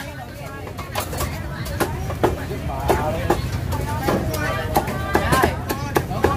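A cleaver chops through roast duck onto a wooden chopping block.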